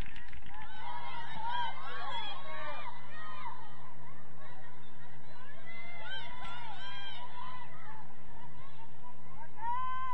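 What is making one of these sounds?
A group of young women cheers and shouts from a sideline outdoors.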